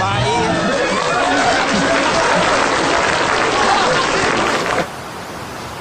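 An audience claps loudly.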